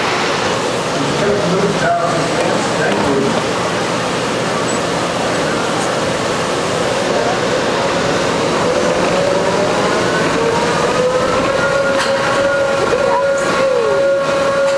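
A ride car rumbles steadily along its track.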